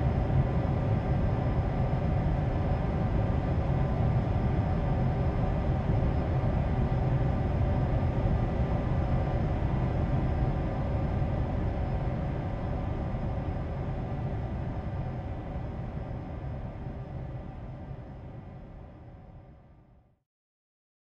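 A jet engine hums and roars steadily, then fades away.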